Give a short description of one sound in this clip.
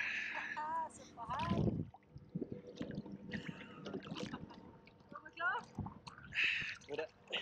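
Water splashes and laps around a swimmer.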